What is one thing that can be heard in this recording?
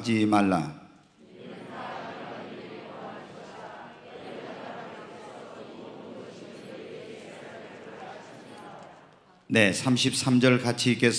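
A man speaks into a microphone in a low, earnest voice.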